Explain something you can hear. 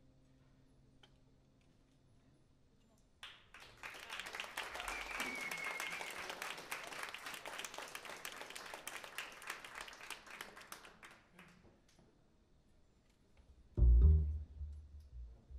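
A keyboard plays.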